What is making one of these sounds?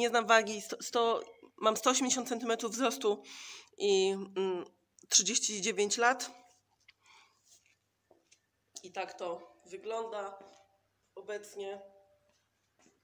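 A woman talks with animation close to a phone microphone.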